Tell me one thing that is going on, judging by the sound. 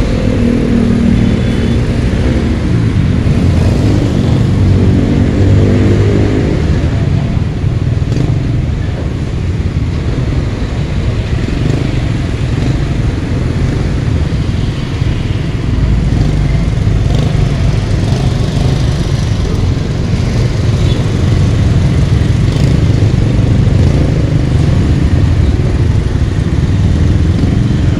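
A motorcycle engine idles and revs close by in slow traffic.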